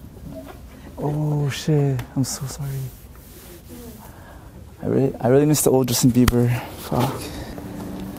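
A young man speaks loudly and with animation nearby.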